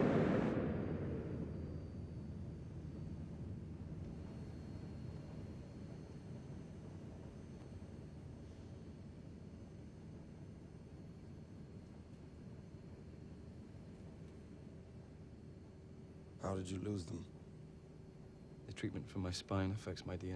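A low steady hum drones inside an aircraft cabin.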